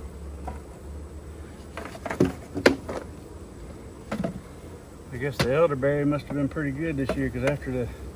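A metal hive tool scrapes and clicks against wood.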